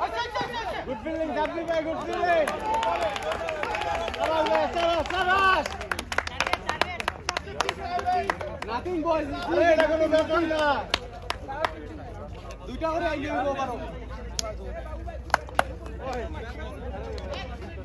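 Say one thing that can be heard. A group of onlookers cheers and talks excitedly nearby.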